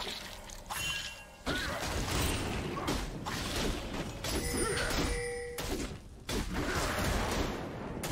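Magical spell effects whoosh and crackle in a fight.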